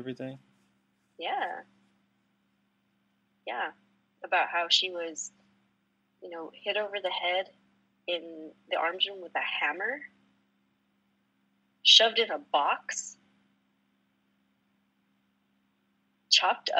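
An adult woman speaks calmly into a microphone, in short phrases with pauses.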